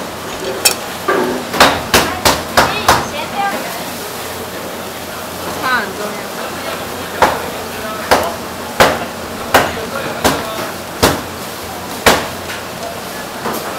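A damp cloth dabs against a wooden board with soft thuds.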